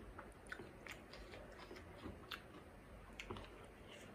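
A crispy fried snack cracks and crunches as fingers break it apart.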